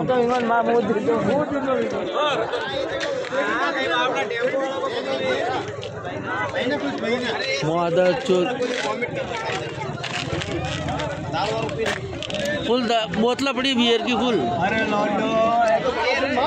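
Several men talk loudly and excitedly close by.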